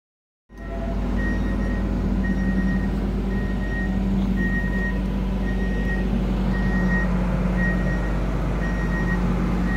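A large diesel engine idles with a steady low rumble.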